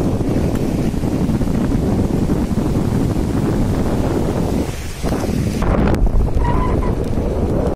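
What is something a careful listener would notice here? Wind rumbles loudly outdoors.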